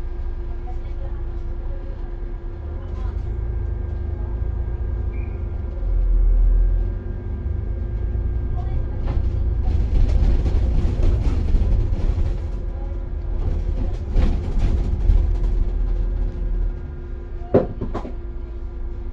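Car tyres roll on the road nearby.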